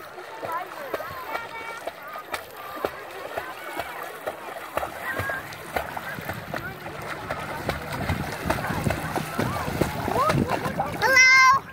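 Water splashes as a child kicks while swimming.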